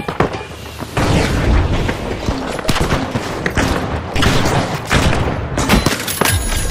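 Gunshots fire in rapid bursts.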